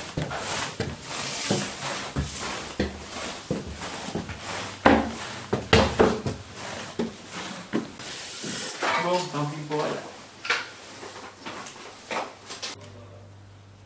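Footsteps thud and scuff on stone stairs.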